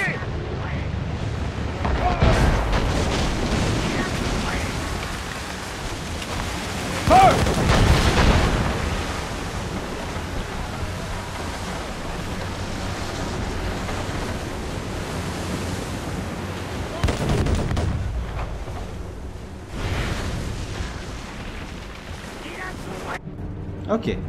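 Wind and sea roar steadily.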